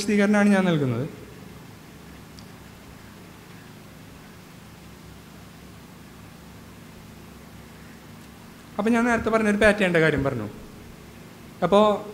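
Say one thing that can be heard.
A young man speaks calmly into a microphone, with long pauses.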